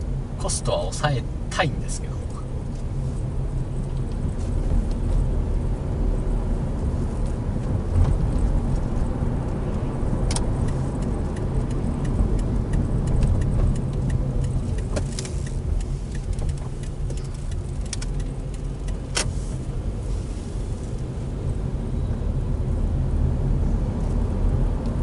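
A car engine hums steadily, heard from inside the cabin.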